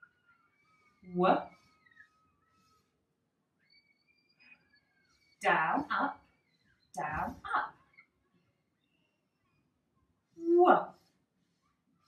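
A woman speaks clearly and slowly, close by, in short phrases.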